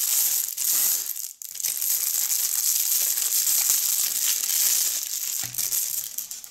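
Plastic packaging crinkles and rustles close by.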